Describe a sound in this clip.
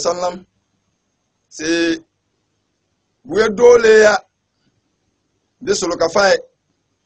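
A man speaks into a microphone in short, emphatic phrases with pauses.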